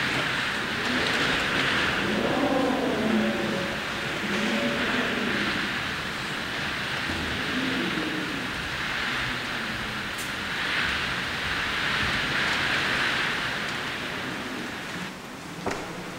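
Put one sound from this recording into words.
Strong wind gusts roar through trees.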